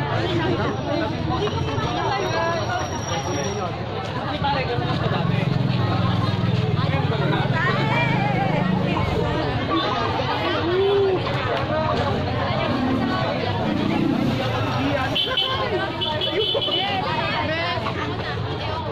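A large crowd of young people chatter and call out all around, outdoors.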